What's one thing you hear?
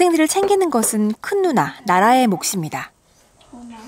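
A young woman speaks in a lively voice.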